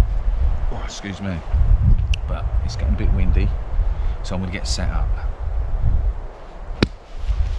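A man talks calmly and close by, outdoors.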